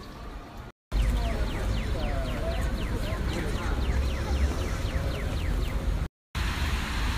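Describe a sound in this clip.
A pedestrian crossing signal ticks rapidly.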